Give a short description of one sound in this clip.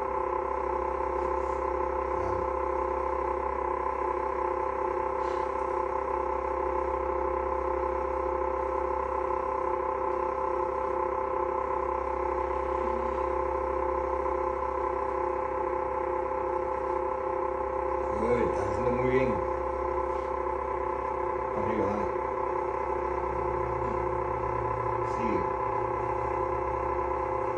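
A vibrating exercise machine hums steadily.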